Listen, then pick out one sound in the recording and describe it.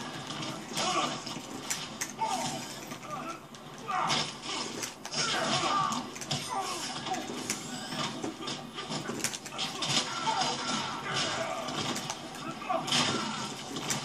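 Punches and kicks thud and crack in a video game fight, heard through a television.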